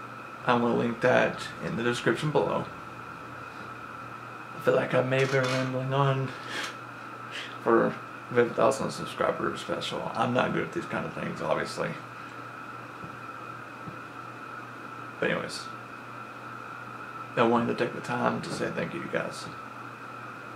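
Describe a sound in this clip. A young man speaks casually and close up, with pauses.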